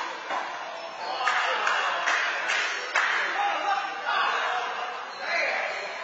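Men talk in an echoing court.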